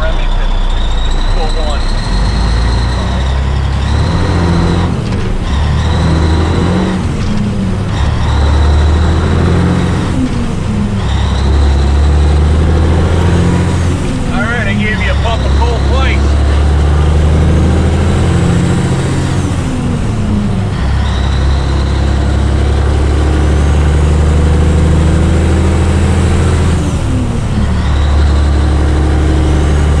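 A turbo whistles high over a truck engine.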